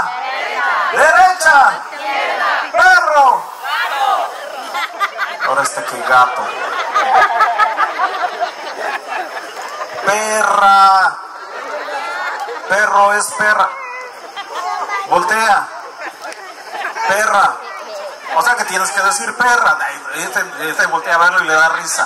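A man speaks with animation through a microphone and loudspeaker.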